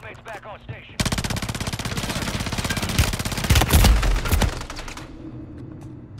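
Automatic gunfire rattles loudly in rapid bursts.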